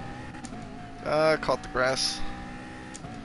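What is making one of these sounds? A racing car engine briefly revs up sharply.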